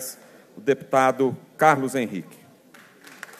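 A man speaks loudly into a microphone in a large hall.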